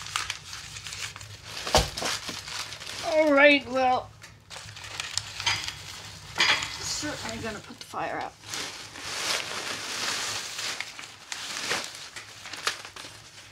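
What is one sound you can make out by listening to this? Paper crumples and rustles in a hand.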